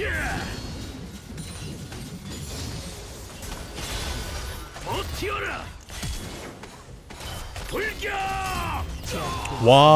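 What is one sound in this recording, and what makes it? Video game sword strikes and spell effects clash during a fight.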